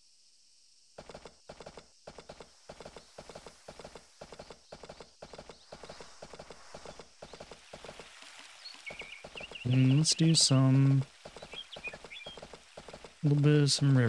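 A horse's hooves clop rhythmically along at a steady gallop.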